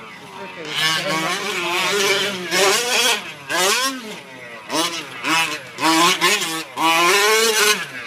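The small two-stroke engine of a gas-powered radio-controlled truck revs up and down as the truck races around a dirt track.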